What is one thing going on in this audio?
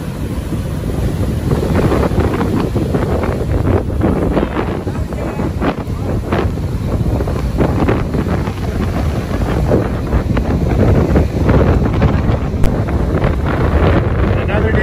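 Waves crash and roll onto the shore.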